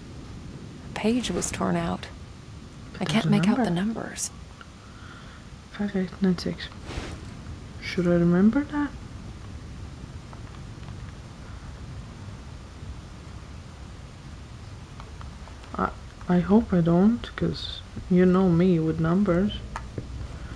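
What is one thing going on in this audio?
A young woman talks in short bursts into a microphone, close by.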